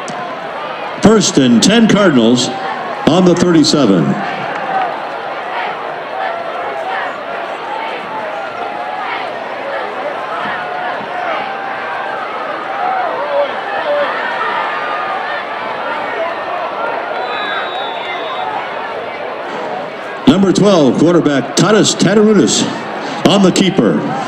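Nearby spectators cheer and shout loudly in bursts.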